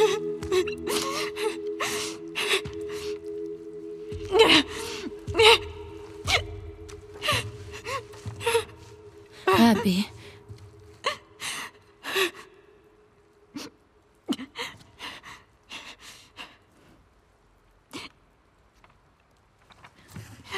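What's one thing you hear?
A young woman pants and breathes heavily, close by.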